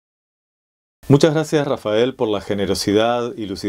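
A young man speaks with animation, close to the microphone.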